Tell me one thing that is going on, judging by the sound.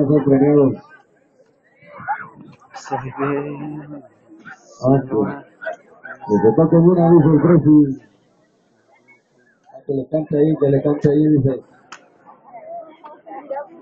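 A crowd of people talks nearby outdoors.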